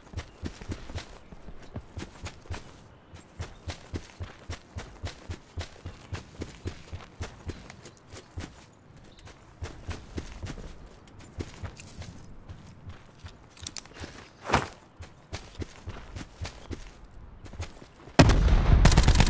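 Footsteps rustle through tall grass at a steady pace.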